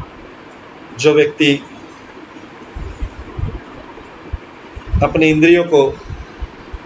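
A middle-aged man speaks calmly, close to a microphone, in short phrases.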